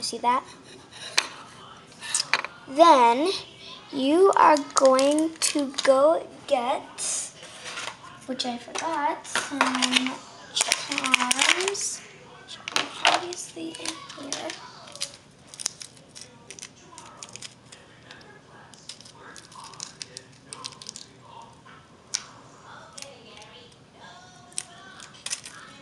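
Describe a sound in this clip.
Plastic toys clatter and knock as they are handled.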